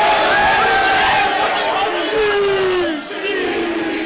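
A young man shouts excitedly up close.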